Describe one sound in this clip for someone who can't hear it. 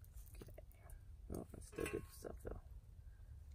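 Fingers pull apart flaky cooked fish with soft, moist crackles.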